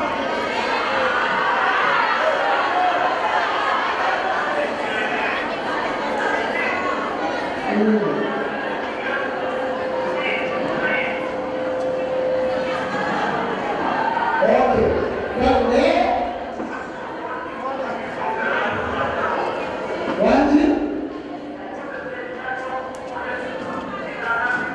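A young man talks through a microphone over loudspeakers in an echoing hall.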